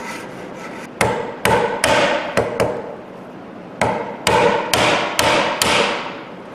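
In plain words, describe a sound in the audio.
A chisel is pushed hard into wood, crunching as it cuts.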